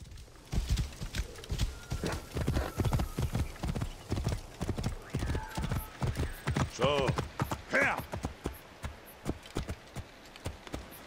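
Horse hooves clop steadily on stony ground.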